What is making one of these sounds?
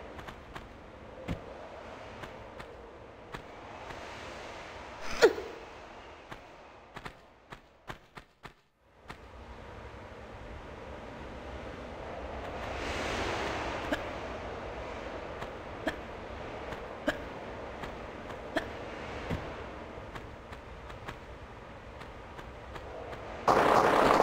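Footsteps patter on stone as a game character runs.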